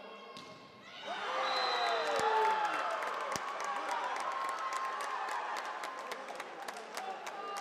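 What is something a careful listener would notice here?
Young women shout excitedly in a large echoing hall.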